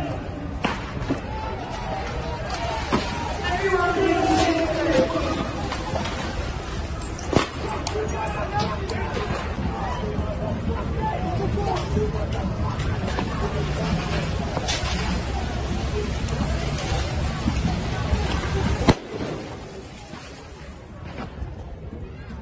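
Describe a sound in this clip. A crowd of men shout and yell nearby.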